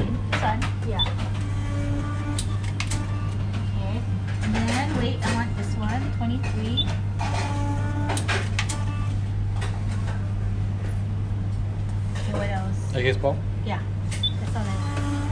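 A ticket machine beeps briefly as buttons are pressed.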